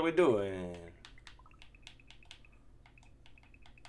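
Short electronic game blips chime in quick succession.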